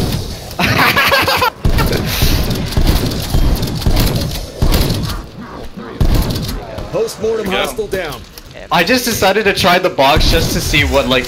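Gunshots boom in quick bursts.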